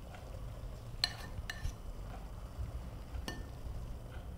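Dishes clink softly against a counter.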